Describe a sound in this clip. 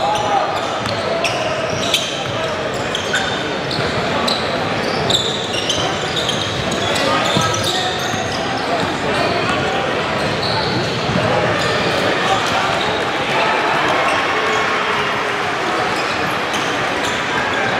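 Sneakers squeak sharply on a wooden court, echoing in a large hall.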